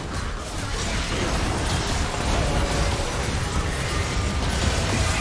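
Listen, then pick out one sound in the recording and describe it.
Magic spells crackle and explode in a busy fight.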